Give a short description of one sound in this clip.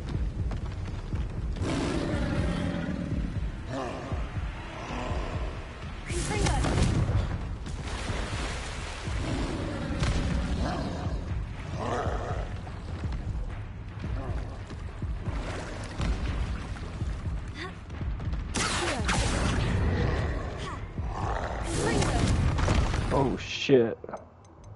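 Magic spells crackle and burst with loud blasts.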